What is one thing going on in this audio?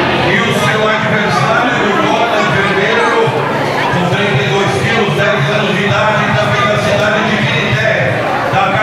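A crowd of people chatter all around in a large room.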